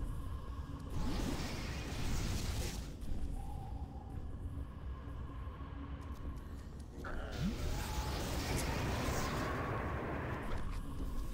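Flames roar and crackle in loud bursts.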